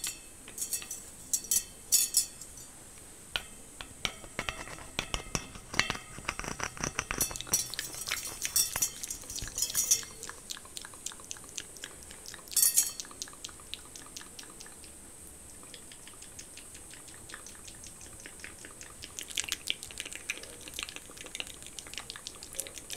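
Thin metal wires of a head massager tick and scratch softly against hair close to a microphone.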